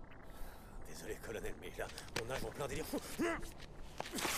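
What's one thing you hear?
A second man cries out and groans in strain.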